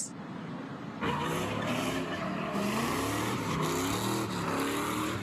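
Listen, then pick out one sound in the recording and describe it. A car engine revs loudly and repeatedly.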